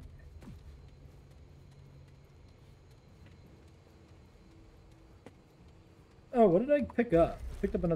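Footsteps tread slowly on hard ground.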